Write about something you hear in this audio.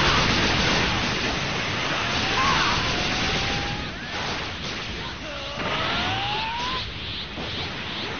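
Energy blasts roar and crackle in a video game fight.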